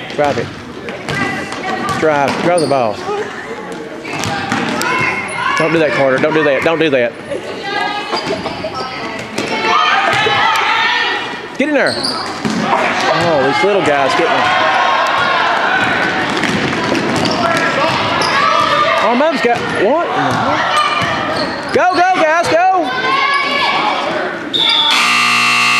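A crowd of children and adults shouts and cheers in a large echoing gym.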